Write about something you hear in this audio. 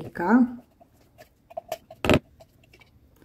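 A spatula scrapes thick paste out of a plastic jar.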